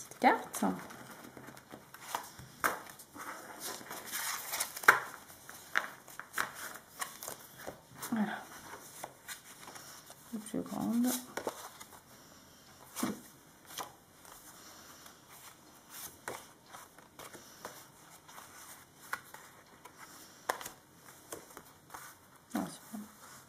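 Stiff paper cards rustle and tap as hands shuffle them.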